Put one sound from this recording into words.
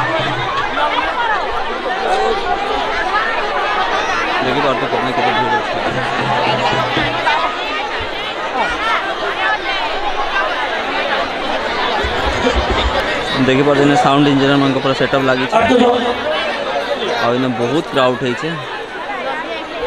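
A large crowd chatters loudly outdoors.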